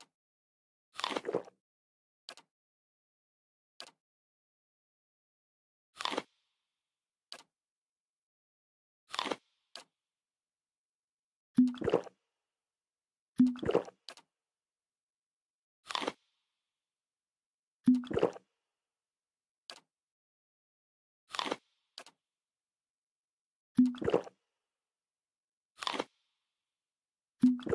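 Short interface clicks and swishes sound now and then.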